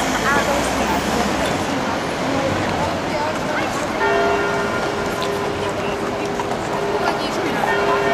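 Horse hooves clop on pavement.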